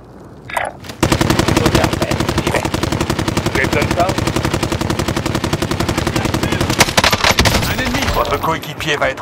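An automatic rifle fires in rapid, steady bursts.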